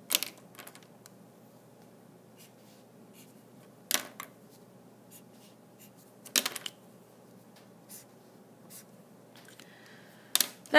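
Marker caps click on and off.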